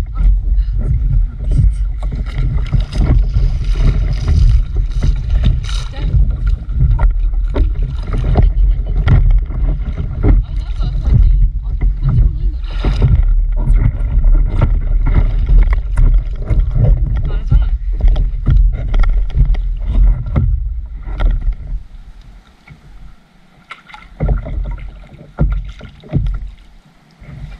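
Water laps and splashes against a floating board.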